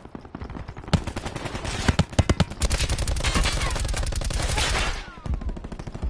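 A rifle fires rapid bursts of shots.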